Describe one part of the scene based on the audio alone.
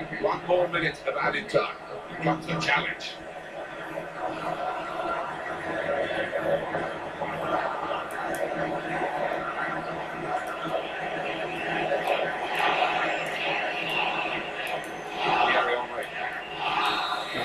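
A football video game's stadium crowd roars steadily through a small loudspeaker.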